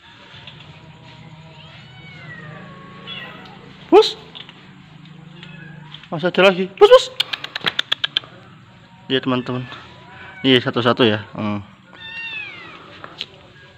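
Kittens meow in thin, high cries.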